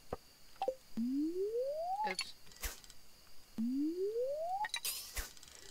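An electronic tone rises steadily in pitch, twice.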